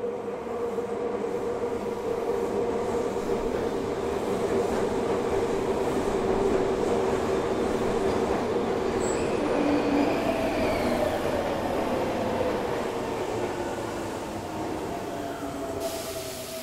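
A subway train rumbles in, growing louder, and rolls along the platform.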